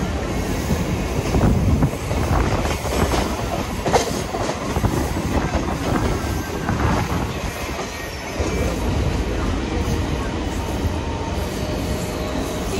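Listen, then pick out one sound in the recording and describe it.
Another train passes close by with a clattering roar.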